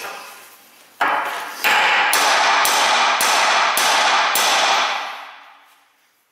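A hammer strikes metal in a quick series of loud, ringing blows.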